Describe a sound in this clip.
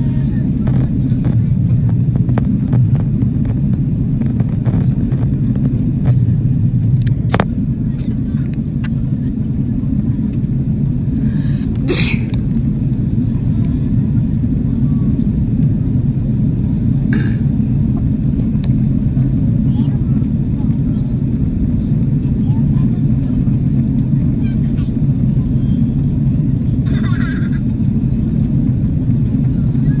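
A jet airliner's engines roar with a steady, deep drone inside the cabin.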